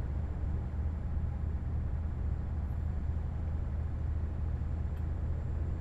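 A truck engine hums low and steady while driving.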